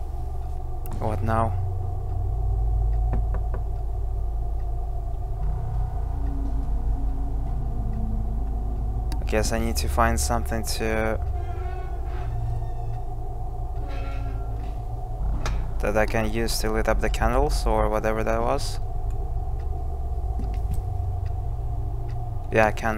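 A young man talks in short bursts close to a microphone.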